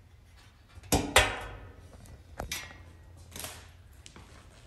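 Metal panels clang and rattle against each other, ringing briefly.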